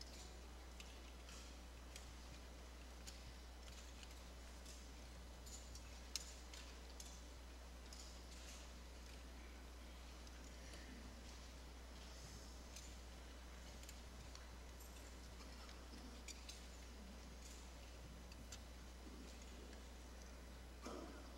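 An audience rustles and shifts quietly in a large hall.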